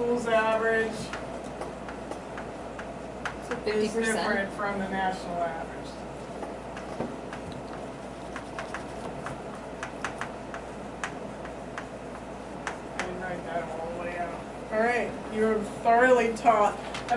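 A woman speaks calmly, as if teaching.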